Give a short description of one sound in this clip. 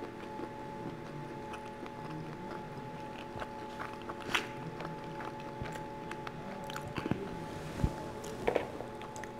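Chopsticks click and tap against food and a wooden board.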